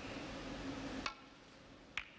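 A snooker cue strikes the cue ball.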